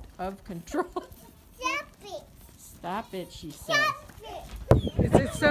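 Young goats bleat close by.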